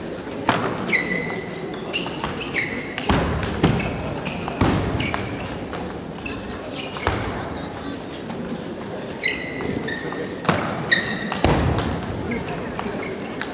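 Sports shoes squeak on the floor.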